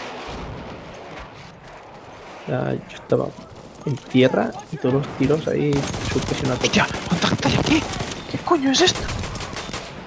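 Gunshots fire in sharp bursts nearby.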